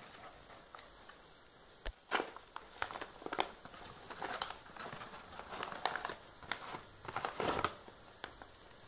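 Paper crinkles and rustles as an envelope is torn open.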